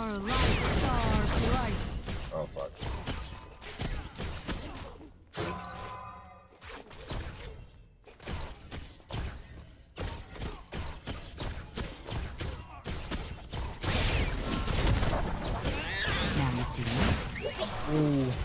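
Game sound effects whoosh and clash.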